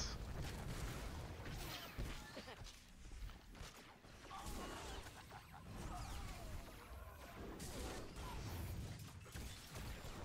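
Energy blasts crackle and boom in a fierce fight.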